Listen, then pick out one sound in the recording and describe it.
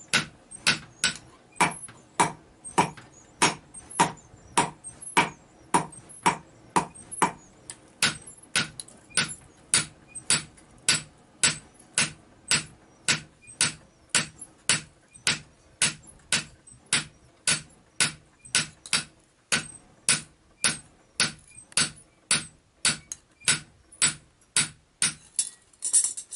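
A hammer strikes hot metal on an anvil in a steady, ringing rhythm.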